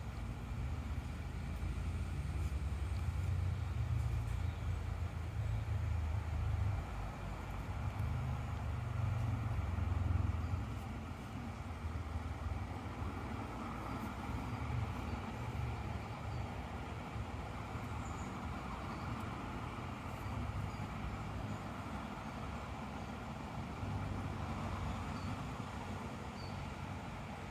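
A shallow stream gently trickles and burbles over rocks.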